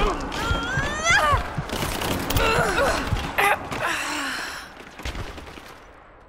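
A pickaxe strikes a body with heavy thuds.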